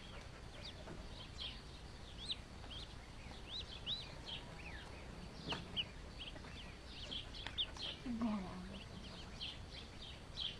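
A duckling peeps rapidly and shrilly, close by.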